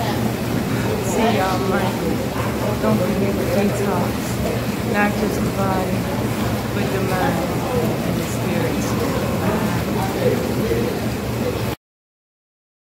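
A woman talks close by, cheerfully.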